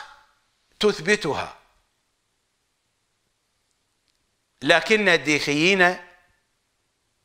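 A middle-aged man speaks emphatically into a close microphone, with long pauses.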